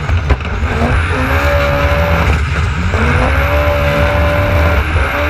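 Water sprays and splashes against the hull.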